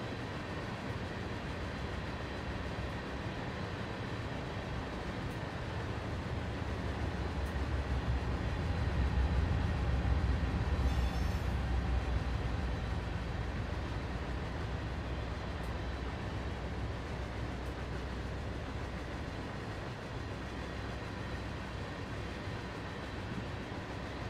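A freight train rumbles and clatters steadily across a metal bridge.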